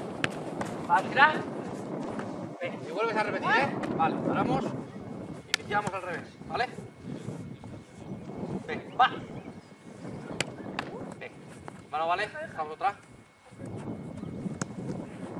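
A football thuds as it is kicked and caught.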